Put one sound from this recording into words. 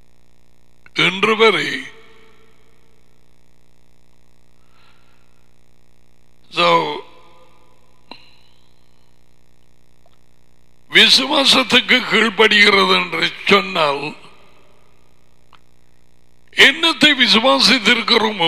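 A middle-aged man speaks into a headset microphone in short bursts with pauses between.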